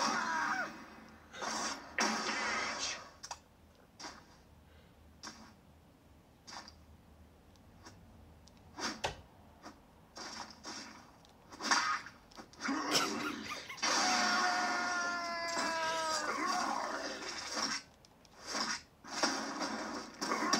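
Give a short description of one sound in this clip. Punches and thuds from a fighting game play through a television speaker.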